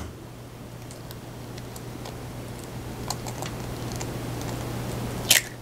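Eggshell cracks and crunches softly between fingers.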